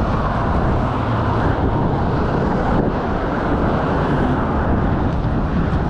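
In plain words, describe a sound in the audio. Cars drive past on a road nearby.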